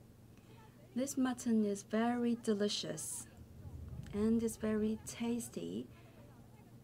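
A young woman speaks into a microphone with animation, close up.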